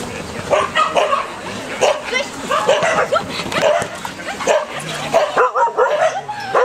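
A woman calls out with animation to a dog outdoors.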